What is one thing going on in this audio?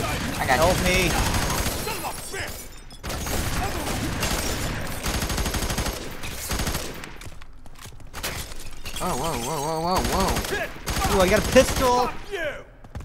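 Automatic gunfire rattles in short bursts.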